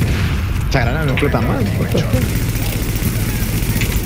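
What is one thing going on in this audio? Fire roars and crackles from an explosion.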